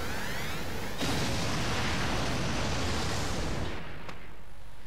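Wind rushes loudly, then dies away.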